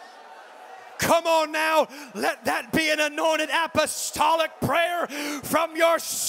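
A man shouts with great energy through a microphone in a large echoing hall.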